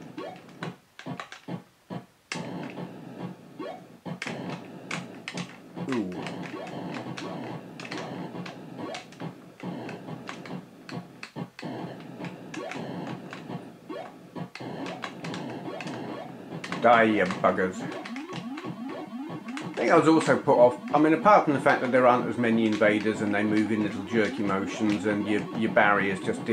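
Retro video game shots fire in quick blips.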